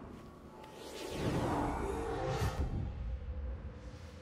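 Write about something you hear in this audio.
A deep whooshing swell rises and fades.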